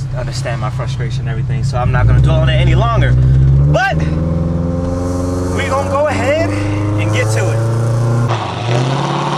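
A man talks and laughs close by.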